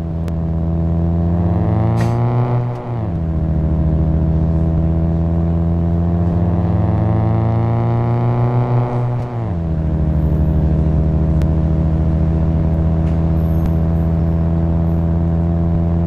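A car engine hums steadily and revs up, then drops back sharply, twice.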